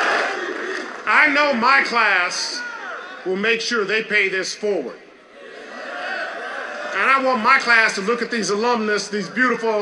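A man speaks forcefully into a microphone, echoing over loudspeakers outdoors.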